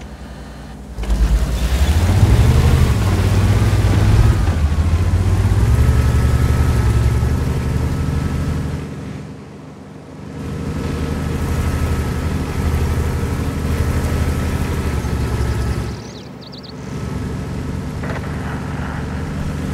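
A heavy tank engine rumbles and roars.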